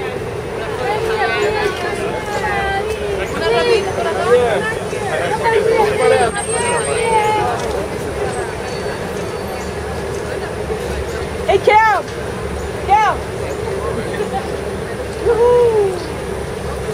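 Young women scream and shriek with excitement nearby.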